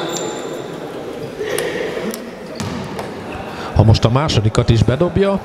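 Sneakers squeak on a hard court in an echoing hall.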